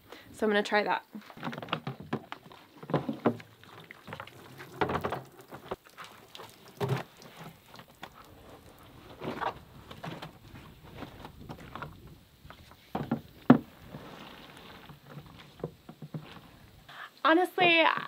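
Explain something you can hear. Plastic parts of a small washer clunk and knock.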